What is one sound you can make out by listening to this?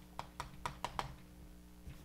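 Chalk taps and clicks against a blackboard.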